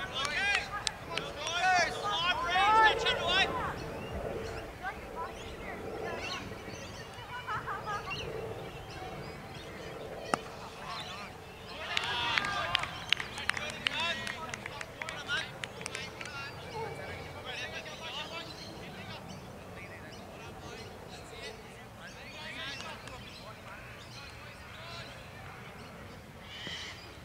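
Men shout an appeal across an open field.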